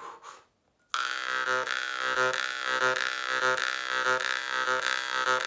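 A man plays a small harmonica in quick, lively bursts.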